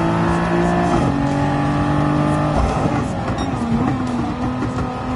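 A racing car engine roars and drops in pitch as it shifts down through the gears while braking.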